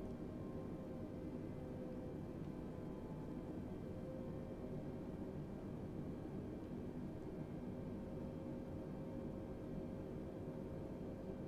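Jet engines hum steadily in a low, constant drone.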